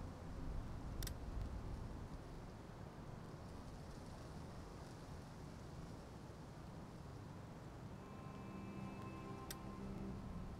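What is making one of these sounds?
A short interface click sounds.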